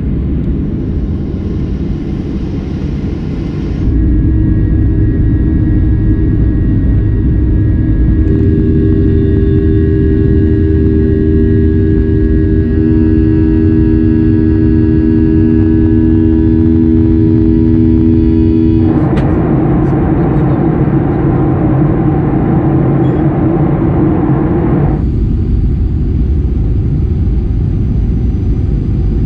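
Jet engines roar loudly and steadily from close by.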